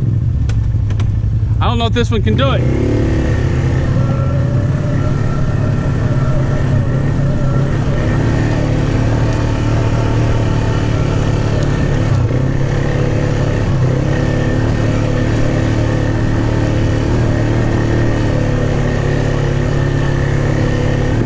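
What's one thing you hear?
An all-terrain vehicle engine rumbles steadily as it climbs.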